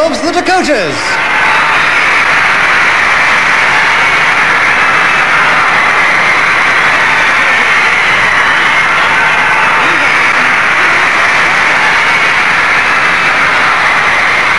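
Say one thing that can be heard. A large crowd of young women screams and shrieks steadily.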